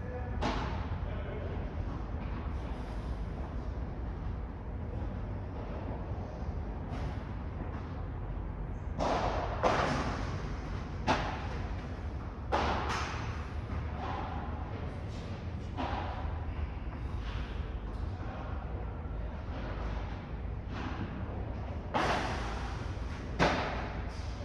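Sneakers squeak and shuffle on a court.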